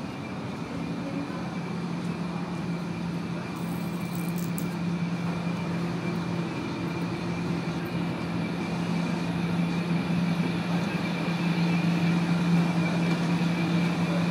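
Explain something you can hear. A train engine hums steadily and grows louder as the train pulls in.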